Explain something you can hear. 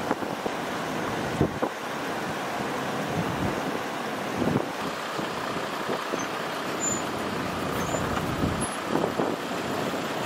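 A vehicle's tyres thump over logs.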